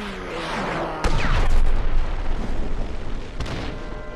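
An explosion booms and rumbles.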